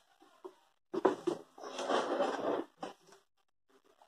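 Cardboard rustles as a box is searched.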